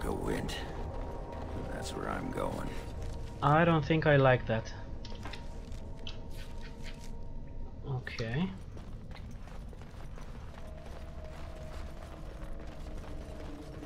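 Footsteps tread on rocky ground.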